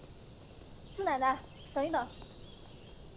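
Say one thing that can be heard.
A young woman calls out from a short distance outdoors.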